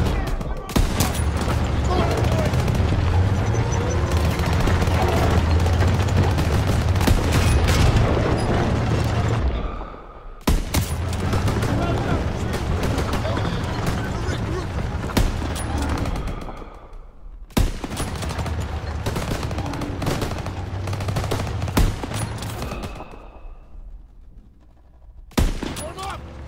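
A scoped sniper rifle fires sharp shots in a video game.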